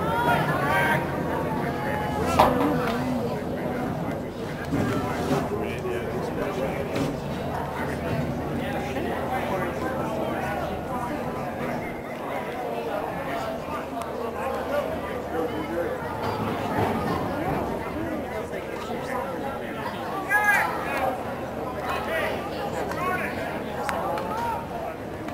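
Spectators chatter and call out from the sidelines.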